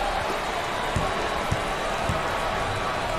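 A basketball bounces a few times on a hard floor.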